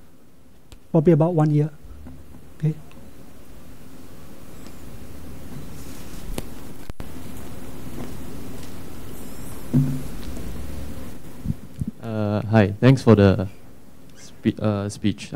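A man speaks into a microphone, pausing between phrases.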